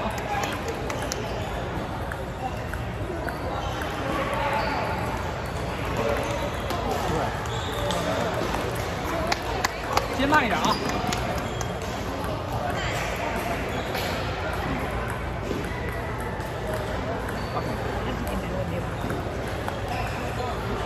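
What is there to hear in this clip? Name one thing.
A crowd of players and onlookers chatters in the background.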